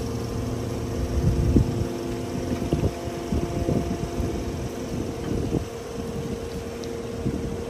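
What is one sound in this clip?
A forklift engine hums steadily close by.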